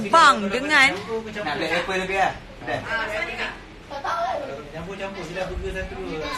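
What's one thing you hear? A young woman talks animatedly and close up.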